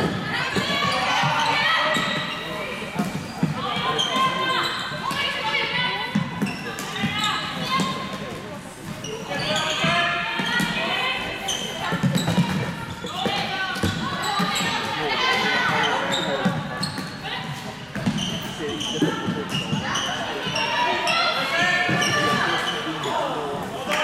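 Sneakers squeak on a hard indoor floor.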